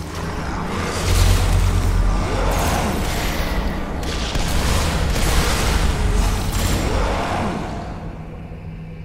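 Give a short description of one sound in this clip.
Laser turrets fire with a loud, crackling buzz.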